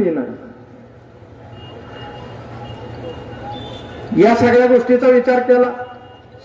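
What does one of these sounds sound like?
A man speaks loudly and forcefully into a microphone, heard through loudspeakers outdoors.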